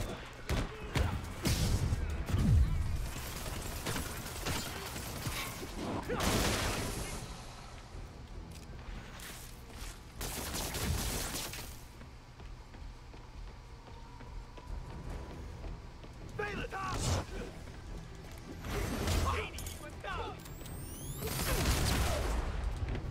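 Punches and kicks thud in a brawl.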